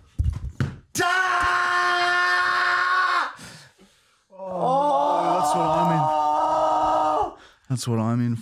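A man lets out long, drawn-out yells.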